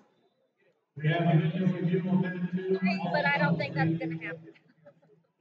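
A man speaks loudly close by in a large echoing hall.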